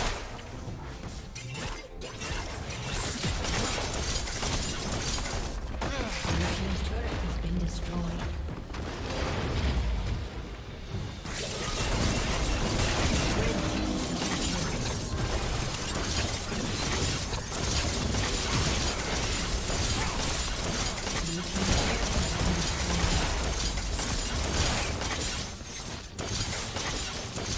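Video game combat effects of magic blasts and hits play.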